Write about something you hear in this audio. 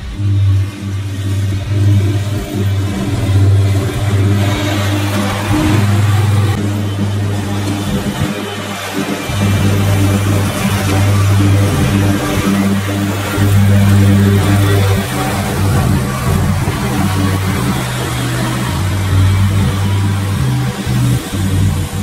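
A riding mower's engine drones steadily, growing louder as it passes close and fading as it moves away.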